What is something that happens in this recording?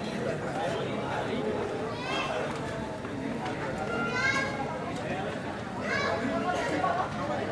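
Several young men chatter and call out nearby, outdoors.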